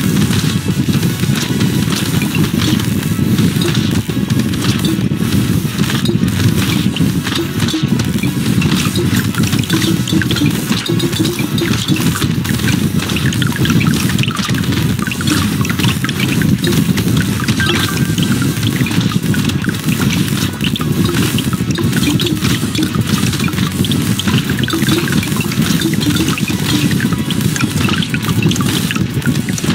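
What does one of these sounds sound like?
Video game weapons fire rapidly, with many small blasts and crackles.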